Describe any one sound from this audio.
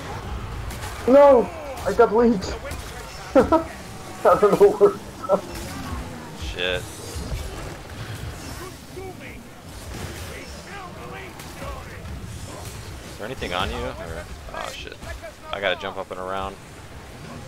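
A sword slashes and thuds into bodies.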